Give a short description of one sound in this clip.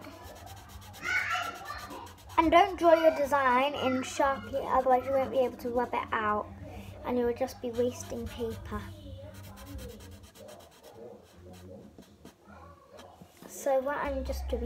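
A girl talks calmly close by.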